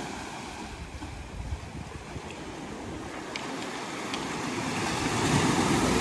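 Waves wash gently onto a pebble shore.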